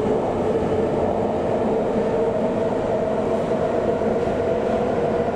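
A subway train rumbles and hums loudly along the tracks.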